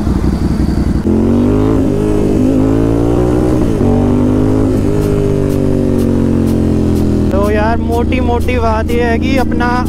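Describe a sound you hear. A motorcycle engine roars and rises in pitch as it accelerates through the gears.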